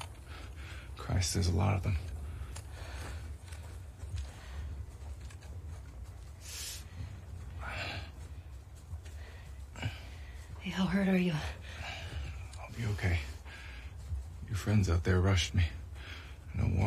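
A young man speaks quietly and tensely.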